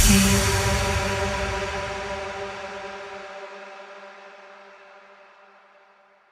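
A synthesized musical chord rings out and slowly fades away.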